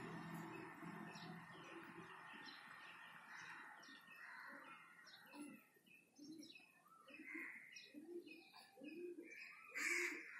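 A baby coos and babbles softly nearby.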